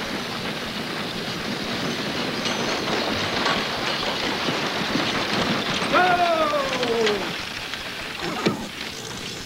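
A wagon rattles along.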